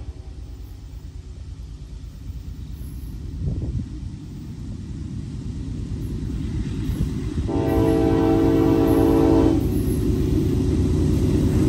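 A train rumbles as it approaches, growing louder.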